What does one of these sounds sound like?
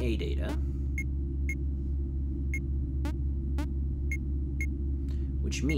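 Short electronic beeps sound at an even pace.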